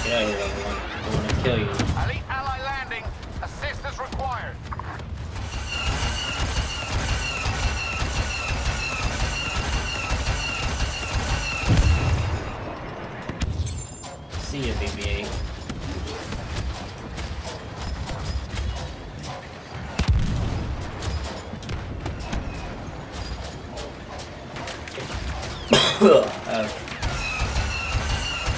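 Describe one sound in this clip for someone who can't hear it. Blaster shots and explosions crack and boom in bursts.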